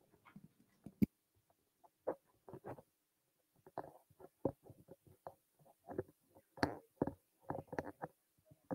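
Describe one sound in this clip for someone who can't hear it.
Dishes clink softly as a man handles them.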